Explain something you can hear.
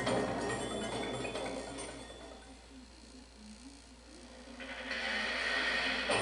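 Music plays from a television loudspeaker in a room.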